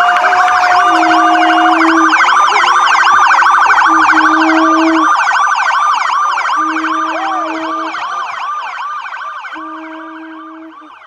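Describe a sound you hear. A police siren yelps rapidly nearby and slowly fades.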